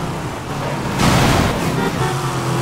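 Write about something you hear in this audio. A car whooshes past in a sudden burst of noise.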